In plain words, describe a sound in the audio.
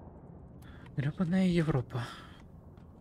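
A young woman exclaims into a microphone.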